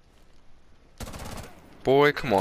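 A rifle fires a quick burst of gunshots.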